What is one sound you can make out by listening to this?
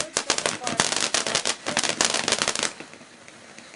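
A firework fountain crackles and pops rapidly.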